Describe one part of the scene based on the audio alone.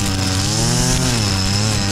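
A string trimmer swishes through tall grass.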